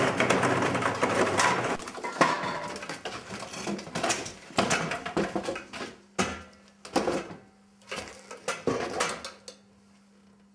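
Objects knock and clatter as a man moves things about.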